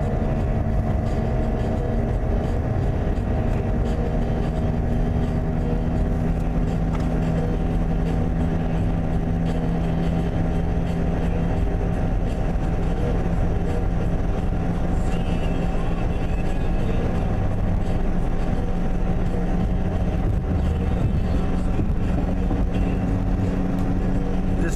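A car's tyres and engine rumble at highway speed, heard from inside.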